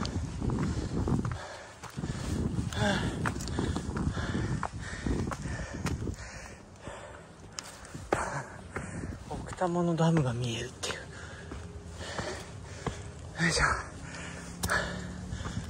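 Footsteps crunch on loose stones and dry leaves.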